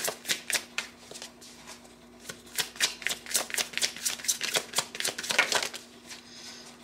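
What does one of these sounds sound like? Playing cards riffle and flutter as a deck is shuffled.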